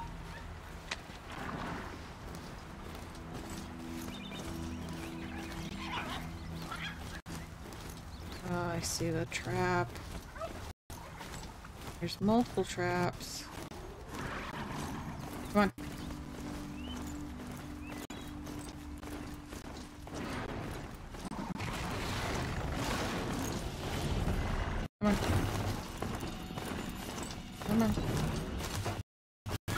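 Hooves thud steadily along a dirt path.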